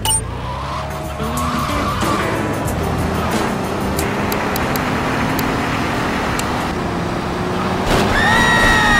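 A car engine revs and hums as a car drives along a street.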